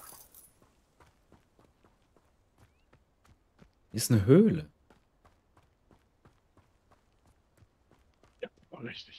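Footsteps tread softly on the ground.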